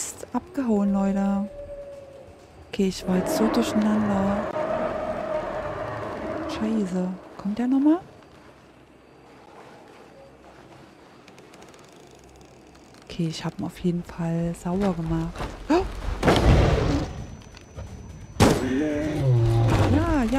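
A young woman talks with animation into a close microphone.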